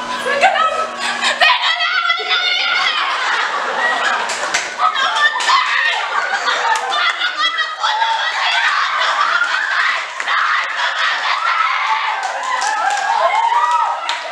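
A second teenage girl cries out and wails nearby.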